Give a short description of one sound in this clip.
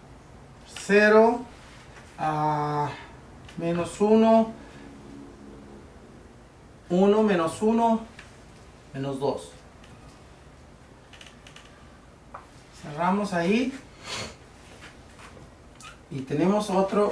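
A middle-aged man speaks calmly and clearly, close by, in short phrases with pauses.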